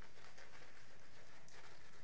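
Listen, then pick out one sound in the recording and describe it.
A brush swirls shaving foam on a face with a soft scratchy lather sound.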